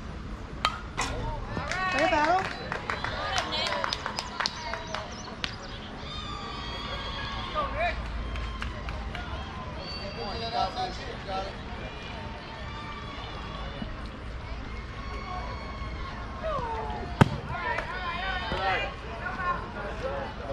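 Young men shout and cheer outdoors from a short distance.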